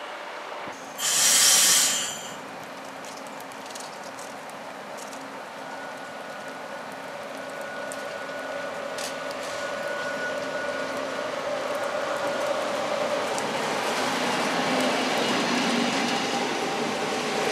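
A train pulls slowly into a station, its wheels rumbling and squealing on the rails.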